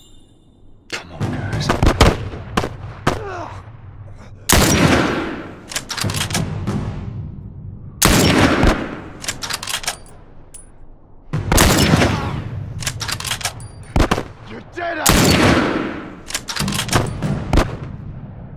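Rifle shots crack loudly and echo away outdoors.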